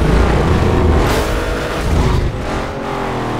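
Flames backfire from a car exhaust with sharp pops.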